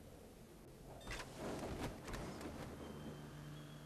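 A parachute snaps open with a rustling whoosh.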